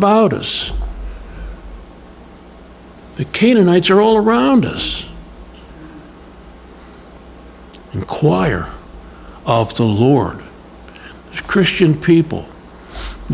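An elderly man speaks calmly into a microphone, with pauses.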